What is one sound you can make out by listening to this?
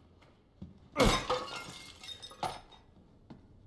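A ceramic vase shatters into pieces.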